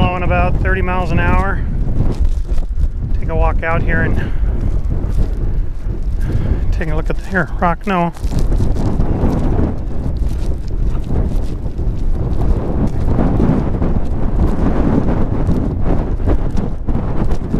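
Strong wind buffets and roars across the microphone outdoors.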